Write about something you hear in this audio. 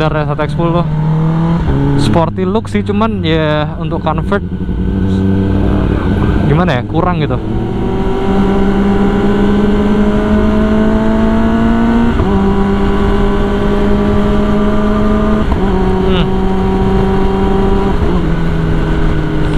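A motorcycle engine roars close by, revving up and down through the gears.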